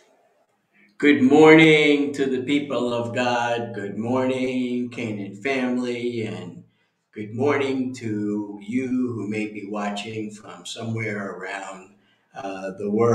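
An older man speaks calmly and clearly into a nearby microphone.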